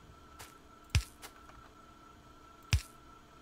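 A heavy thud sounds twice.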